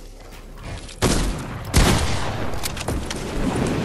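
Game sound effects whoosh and thud loudly.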